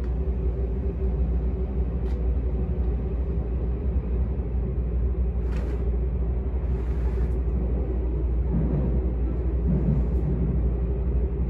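A train rumbles and hums steadily along the tracks, heard from inside a carriage.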